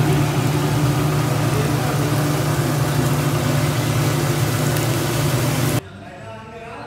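Gas burners roar steadily.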